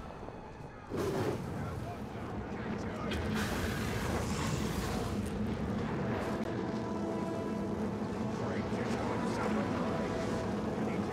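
A dragon breathes fire with a loud roaring blast.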